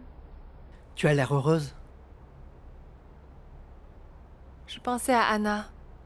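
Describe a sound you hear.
A young woman speaks nearby with animation.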